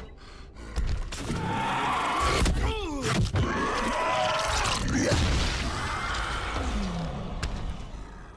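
A creature snarls and tears at its prey in a violent struggle.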